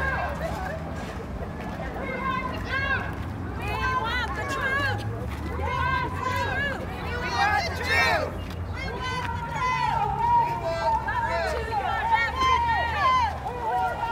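A crowd of men and women chants and calls out outdoors.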